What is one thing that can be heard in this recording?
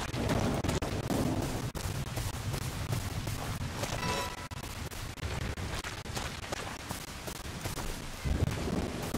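Footsteps squelch on wet ground.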